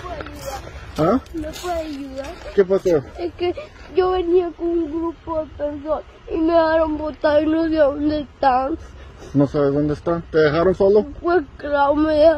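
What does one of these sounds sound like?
A young boy speaks up close, in a high voice, with pauses.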